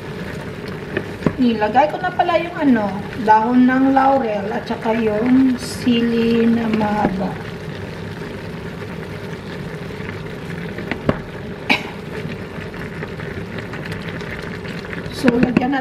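A wooden spoon scrapes and stirs food in a pot.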